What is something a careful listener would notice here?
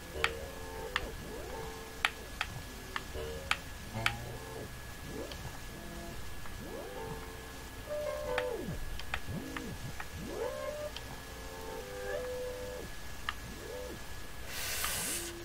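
Bouncy electronic music with blips and sliding tones plays throughout.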